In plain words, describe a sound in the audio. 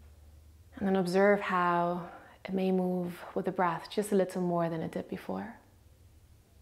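A young woman speaks slowly and calmly, close by.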